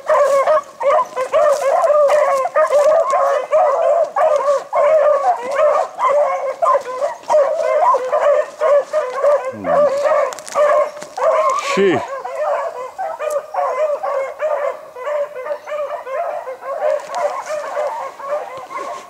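Several hounds bay and yelp continuously outdoors.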